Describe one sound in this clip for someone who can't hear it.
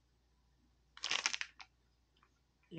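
A foil wrapper crinkles briefly.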